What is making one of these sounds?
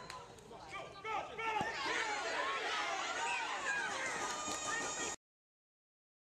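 Young girls and spectators cheer and shout excitedly outdoors.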